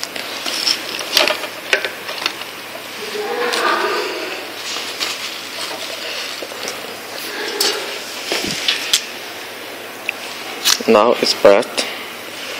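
A hand rustles plastic wrap and cables close by.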